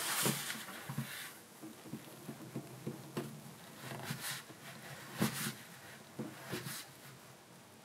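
A chisel scrapes and pares wood in short strokes.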